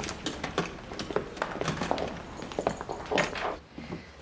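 An elderly man talks into a phone.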